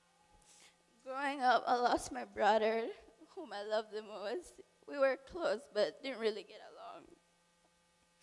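A young woman sings softly through a microphone.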